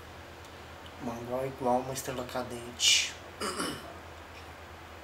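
A man speaks briefly and casually close to a microphone.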